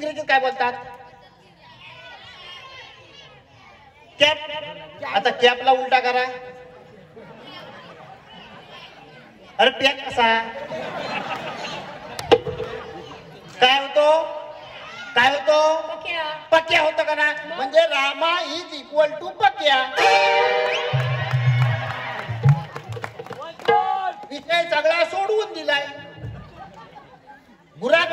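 A man sings through loudspeakers with a drawn-out melodic voice.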